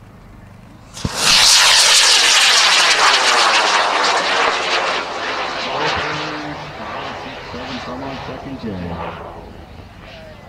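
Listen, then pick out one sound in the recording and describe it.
A high-power rocket motor roars at liftoff and fades as it climbs away.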